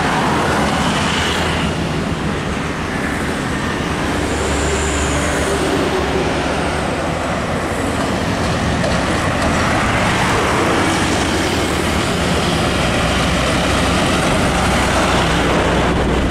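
Heavy trucks rumble past with deep, steady diesel engines.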